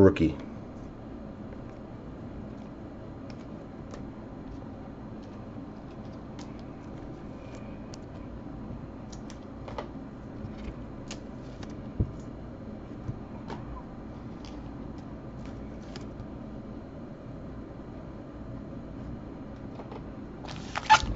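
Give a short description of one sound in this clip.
Trading cards click and rustle as they are shuffled by hand.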